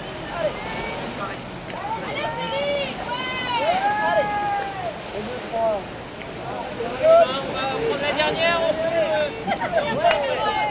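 Several adults and children call out and talk nearby outdoors.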